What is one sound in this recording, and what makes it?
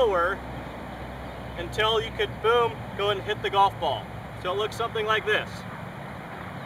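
A man speaks calmly outdoors, close by.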